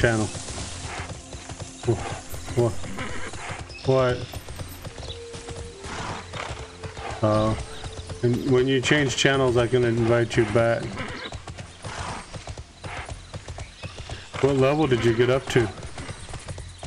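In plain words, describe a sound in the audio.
A man talks casually and close into a microphone.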